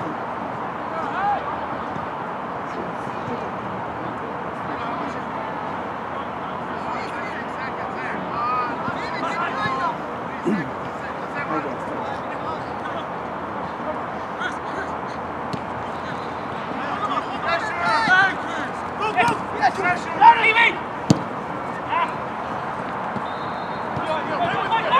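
Spectators chatter and call out from the sidelines.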